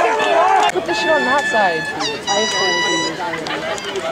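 A referee blows a whistle in sharp blasts.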